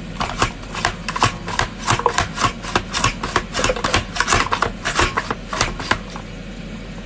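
A slicer blade chops rapidly with quick, sharp clacks.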